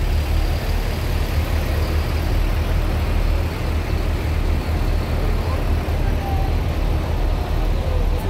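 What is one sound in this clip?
A car engine hums as a car rolls slowly past.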